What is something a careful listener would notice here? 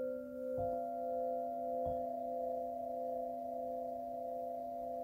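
Crystal singing bowls ring with steady, layered humming tones.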